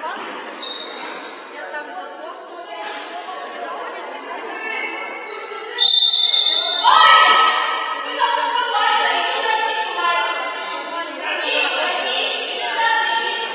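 Young women shout to each other across an echoing hall.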